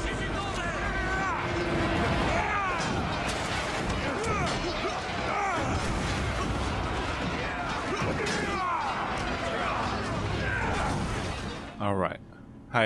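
Swords clash and clang in a noisy battle.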